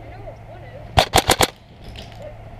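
An airsoft rifle fires a quick burst of shots close by.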